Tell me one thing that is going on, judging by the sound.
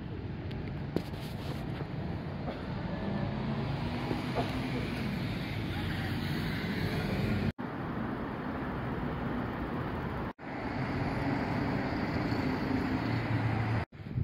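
Traffic rumbles steadily past on a nearby street.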